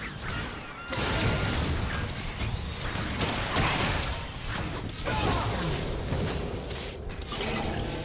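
Game spell effects crackle and whoosh in a busy fight.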